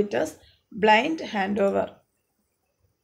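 A woman speaks calmly and clearly into a microphone, as if lecturing.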